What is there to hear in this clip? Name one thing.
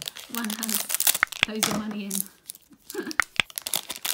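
Scissors snip through a foil packet.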